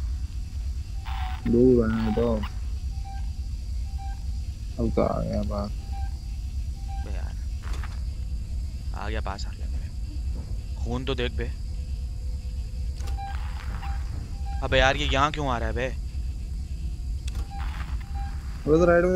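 A motion tracker beeps at a steady pace.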